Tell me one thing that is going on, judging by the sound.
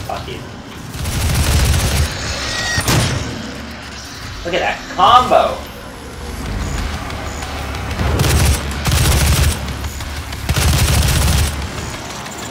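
Heavy guns fire in loud, booming blasts.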